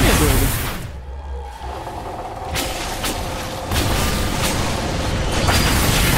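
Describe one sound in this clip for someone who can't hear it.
Flames roar from a fire spell.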